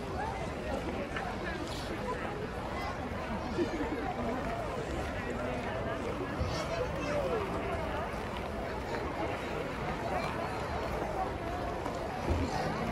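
A crowd of people chatters and calls out across a wide open space outdoors.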